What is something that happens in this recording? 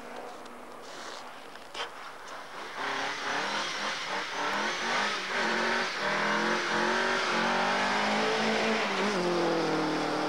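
Snow sprays and hisses under spinning tyres.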